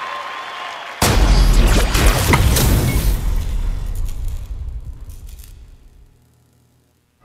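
A loud dramatic blast of game music booms and fades.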